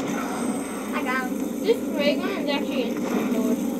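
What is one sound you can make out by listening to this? Zombies growl and screech from a video game.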